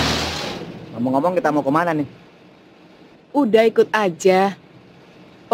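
A young woman speaks anxiously inside a car.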